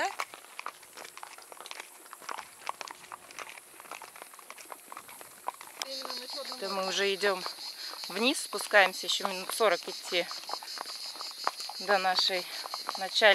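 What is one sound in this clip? Horse hooves clop on a paved road.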